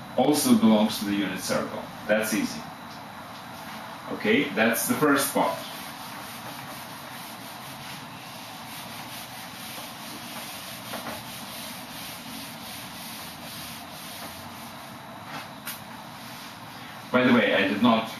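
A middle-aged man speaks calmly nearby, explaining.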